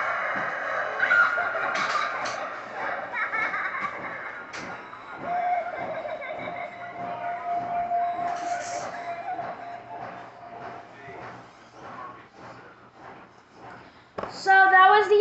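A woman screams from small laptop speakers.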